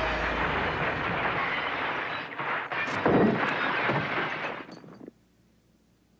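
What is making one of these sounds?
Glass shatters and shards rain down onto pavement.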